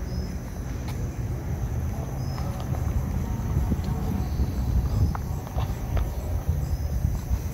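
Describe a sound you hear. Footsteps walk along a paved sidewalk outdoors.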